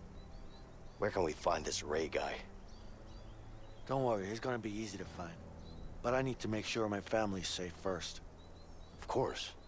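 A second man answers in a low, calm voice.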